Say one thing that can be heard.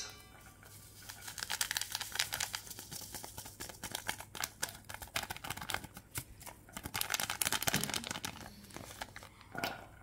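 A paper packet crinkles and rustles as it is torn open.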